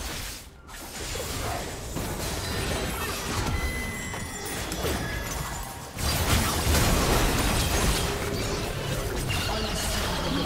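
Video game spell effects whoosh, crackle and boom during a battle.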